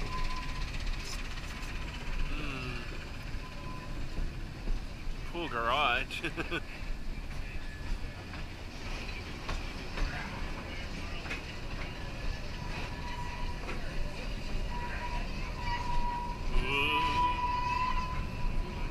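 A small train rumbles steadily along its track.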